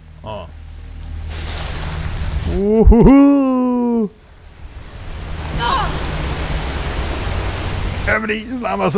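Water rushes and churns loudly.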